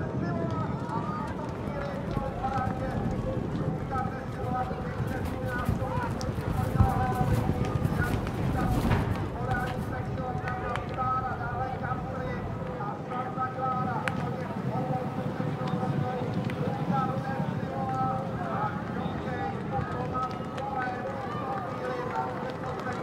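Horses' hooves thud on turf as horses gallop past.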